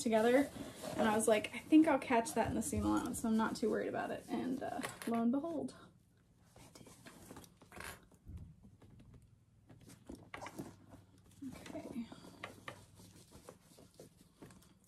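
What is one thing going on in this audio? Fabric rustles as it is handled.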